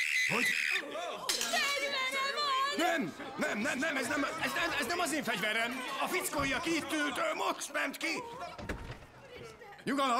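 A man shouts with animation.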